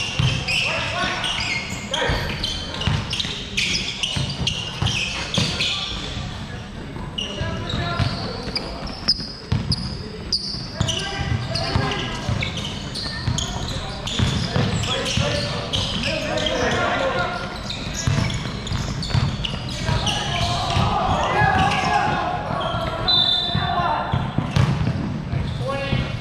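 Young men call out to each other across an echoing hall.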